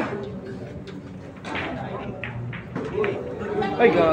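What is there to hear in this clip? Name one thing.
Billiard balls knock against each other.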